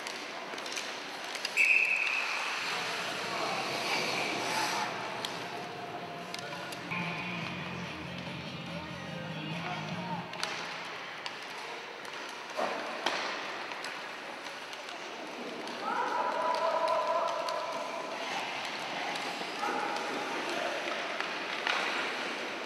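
Sled blades scrape across the ice.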